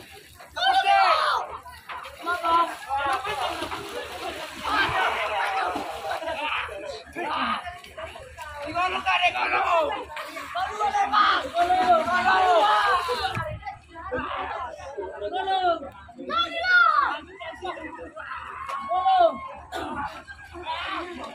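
A crowd of people shouts and cheers excitedly nearby.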